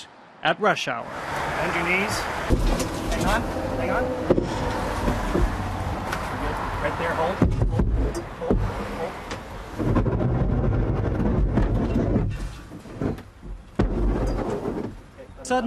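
Wind rushes past an open vehicle as it drives.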